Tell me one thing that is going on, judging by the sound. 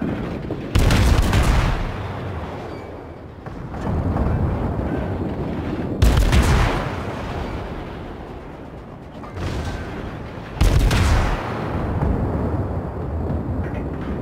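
Heavy naval guns fire loud booming salvos that rumble away.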